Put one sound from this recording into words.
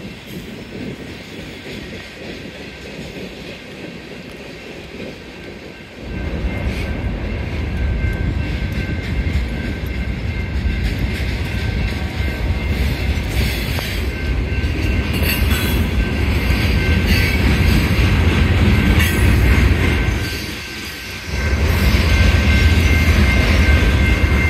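A freight train rumbles and clatters past nearby.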